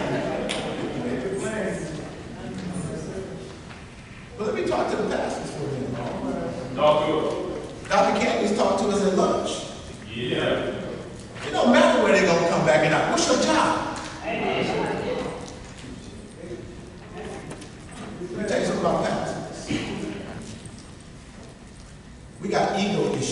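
A man speaks with animation through a microphone in a large echoing room.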